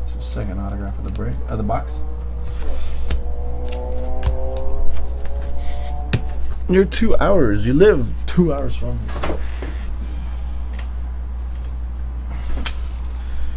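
A stiff plastic card holder taps and clicks as it is handled.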